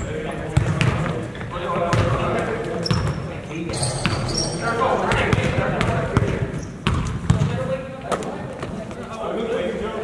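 A basketball bounces on a wooden floor, echoing in a large hall.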